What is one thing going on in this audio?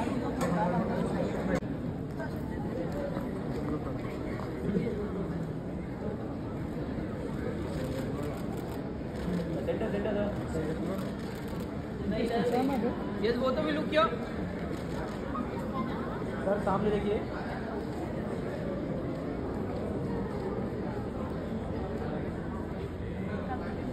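Men and women chatter in a crowd nearby, with voices calling out now and then.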